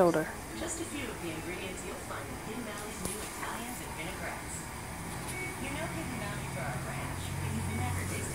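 A young woman talks softly close by.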